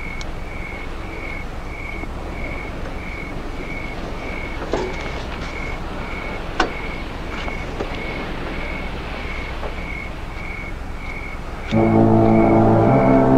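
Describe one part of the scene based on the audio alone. A car's open-door warning beeps in a steady, even rhythm.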